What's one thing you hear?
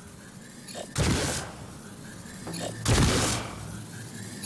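A gun fires loud single shots.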